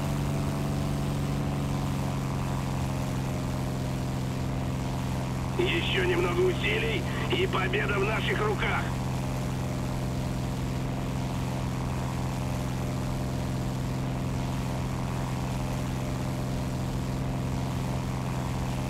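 Twin propeller engines drone steadily.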